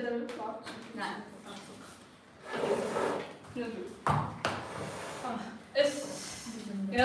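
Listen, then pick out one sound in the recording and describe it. A small wind ensemble plays a lively tune in a room with a slight echo.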